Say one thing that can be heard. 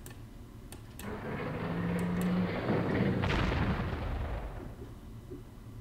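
A tank engine rumbles loudly, then fades away.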